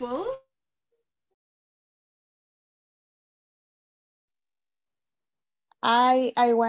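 A woman speaks in a drawn-out, sing-song voice over an online call.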